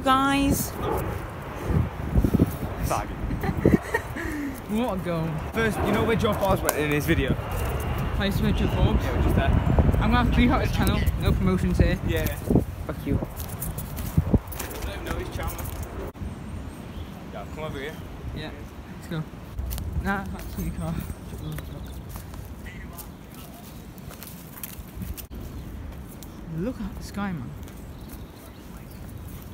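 Footsteps crunch on dry leaves outdoors.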